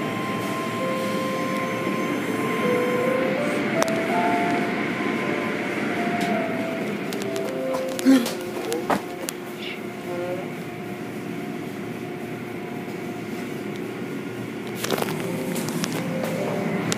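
Car wash brushes whir and slap against a car.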